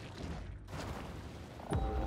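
Water splashes as a large fish breaks the surface.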